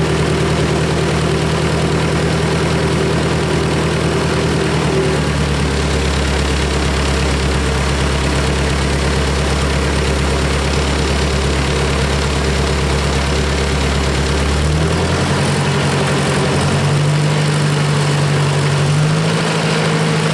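An old tractor engine idles with a steady chugging and its speed changes now and then.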